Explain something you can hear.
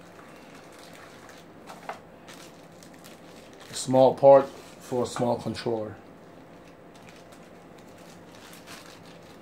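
Plastic packaging crinkles and rustles as it is unwrapped by hand.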